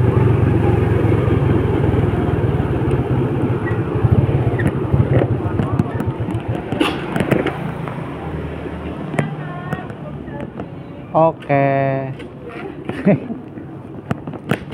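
A motorcycle engine rumbles while riding, then settles and quiets.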